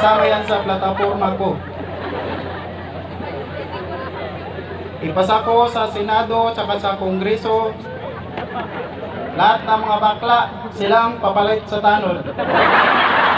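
A singer's voice rings out through loudspeakers outdoors.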